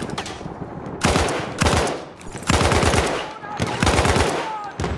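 Rifle shots fire in loud, booming bursts close by.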